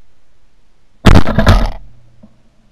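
A shotgun fires a loud blast outdoors.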